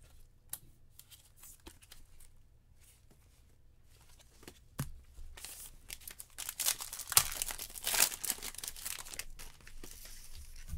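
A plastic card sleeve rustles and crinkles close by.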